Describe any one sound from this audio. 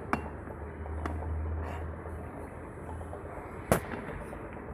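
A glass bottle clinks against a hard surface.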